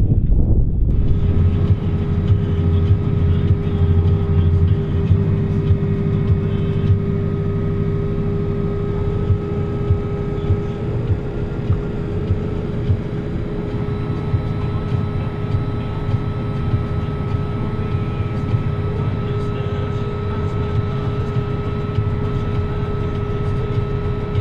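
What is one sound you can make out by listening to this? A slurry pump on a tanker whines with a steady hum.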